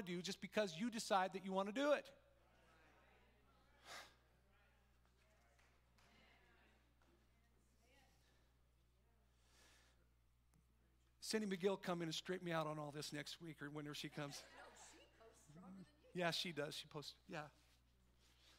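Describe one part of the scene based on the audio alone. A middle-aged man speaks with animation through a microphone in a large echoing hall.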